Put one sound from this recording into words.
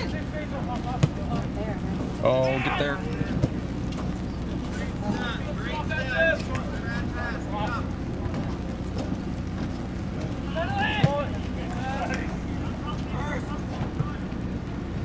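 A soccer ball thuds as a player kicks it.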